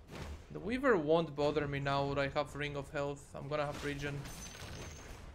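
A young man speaks with animation into a microphone, close up.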